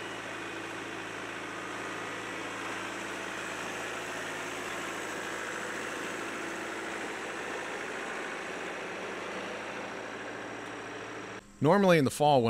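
A tractor engine idles with a steady low hum close by.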